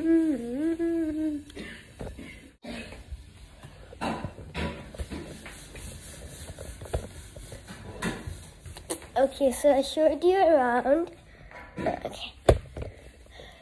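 A young girl talks in a lively, sing-song way close to the microphone.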